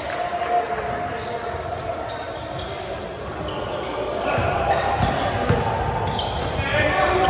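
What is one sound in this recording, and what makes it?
Young men shout to each other across a large echoing gym.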